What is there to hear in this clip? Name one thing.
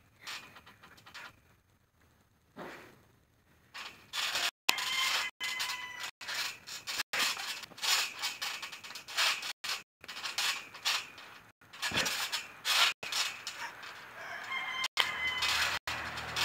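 A trampoline mat thumps and its springs creak as someone bounces.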